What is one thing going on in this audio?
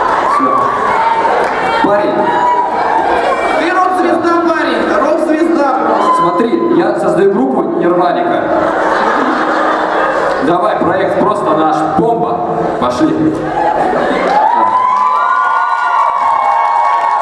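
A young man sings into a microphone, heard through loudspeakers in a large hall.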